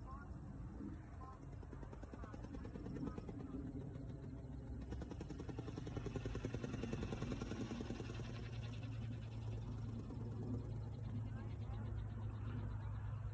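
A small aircraft engine drones high overhead.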